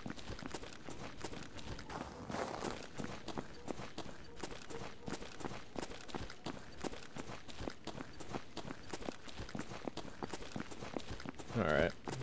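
Footsteps crunch steadily over snow and gravel.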